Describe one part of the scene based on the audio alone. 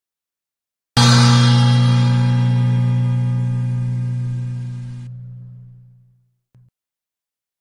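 A short triumphant jingle plays and rings out.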